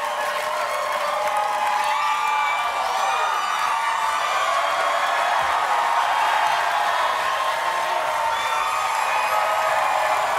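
A large audience cheers and whoops loudly.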